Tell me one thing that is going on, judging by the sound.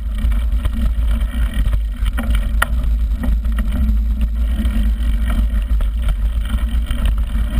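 A bicycle rattles and clanks over bumps.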